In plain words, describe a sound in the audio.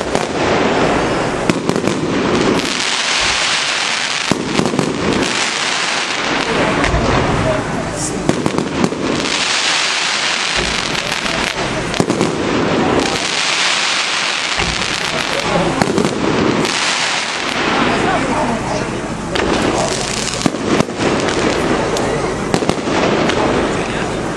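Fireworks crackle and sizzle as sparks scatter.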